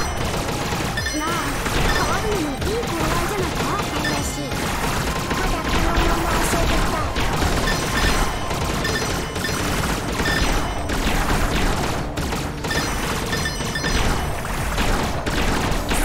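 Rapid electronic shooting effects chirp and zap.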